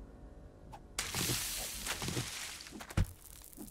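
Dry brush rustles and crackles as it is chopped.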